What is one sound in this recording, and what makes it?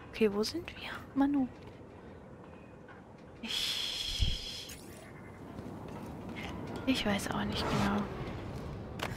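A young woman talks casually into a microphone, close by.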